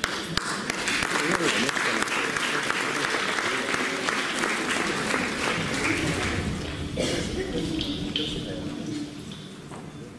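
Two young girls speak into microphones over a loudspeaker in a large hall.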